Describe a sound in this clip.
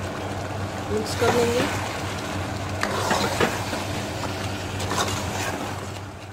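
A metal spoon scrapes and clatters against a pot as food is stirred.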